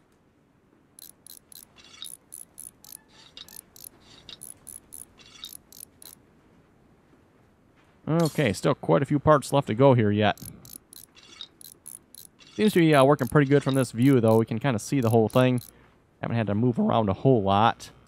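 A ratchet wrench clicks rapidly as it turns bolts.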